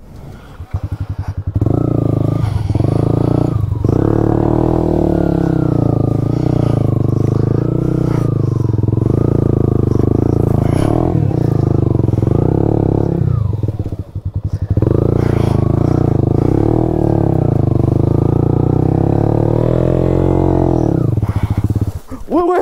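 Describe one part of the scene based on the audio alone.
A motorcycle engine roars close by, revving up and down as it strains.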